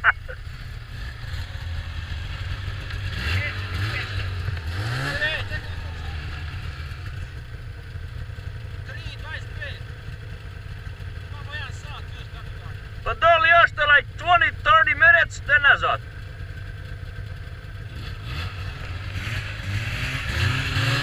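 A snowmobile engine idles with a low rumble.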